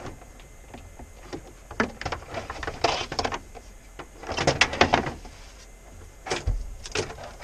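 Wooden parts knock and clatter close by.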